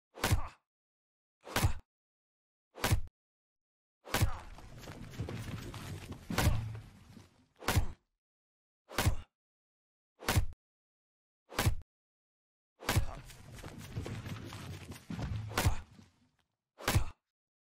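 An axe chops into a tree trunk with sharp, regular thuds.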